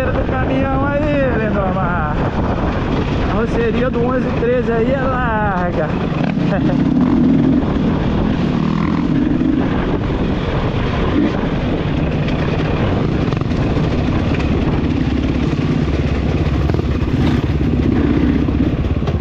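A dirt bike engine roars up close, revving up and down.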